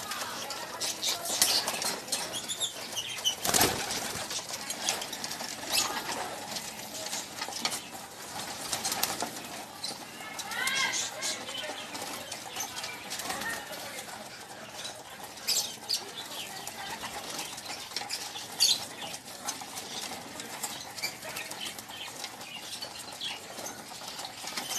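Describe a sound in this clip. Many pigeons peck at grain on a wire floor with quick, irregular taps.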